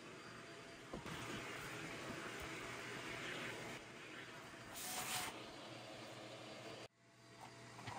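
A handheld vacuum cleaner whirs steadily up close.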